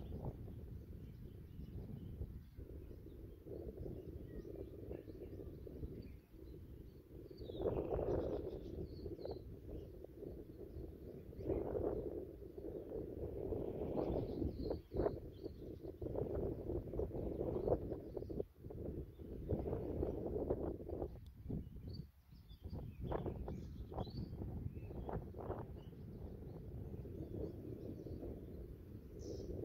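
Wind gusts and rumbles loudly, buffeting outdoors.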